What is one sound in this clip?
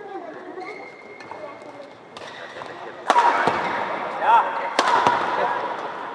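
A shuttlecock is struck sharply by rackets.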